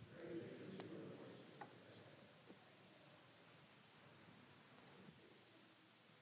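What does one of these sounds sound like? A man speaks quietly in a large echoing hall.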